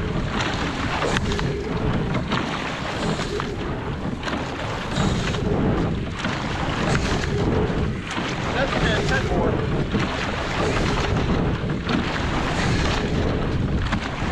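Oars knock in their locks with each stroke.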